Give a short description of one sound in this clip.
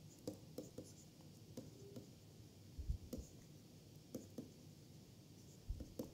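A stylus taps and scratches on a tablet.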